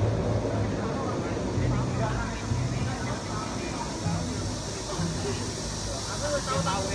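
Riders on a tall ride scream faintly far overhead.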